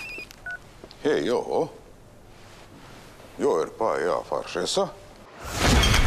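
A man talks into a phone.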